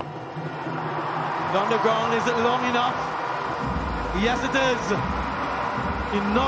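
A crowd cheers in a stadium.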